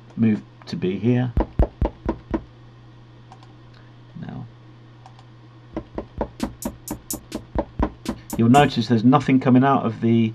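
Electronic drum sounds play in quick, punchy hits.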